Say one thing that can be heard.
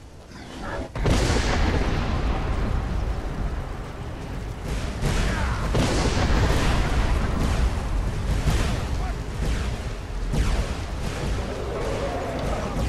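A dragon breathes a loud, roaring blast of fire.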